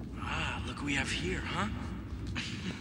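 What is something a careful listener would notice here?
A young woman laughs breathlessly close by.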